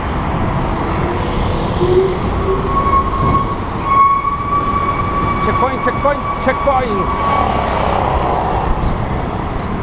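A motorcycle engine hums nearby.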